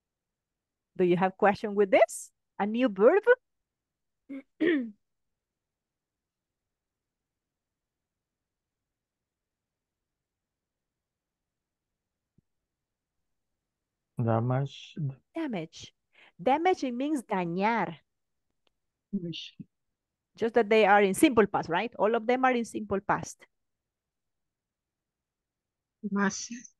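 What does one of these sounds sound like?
A woman speaks calmly through an online call.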